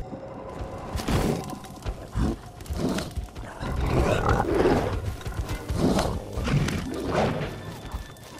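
Large creatures grunt and roar close by.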